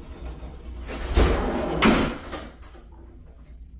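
A door swings open with a loud bang.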